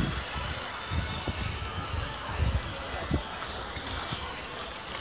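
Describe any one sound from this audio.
Stroller wheels roll over paving.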